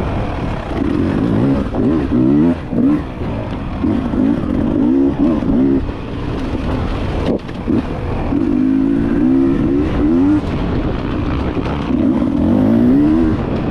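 Wind rumbles against the rider's helmet.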